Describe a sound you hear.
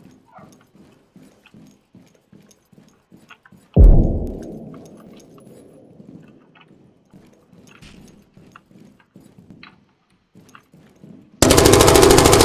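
Footsteps climb hard stairs.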